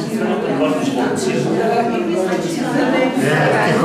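An elderly woman talks close by.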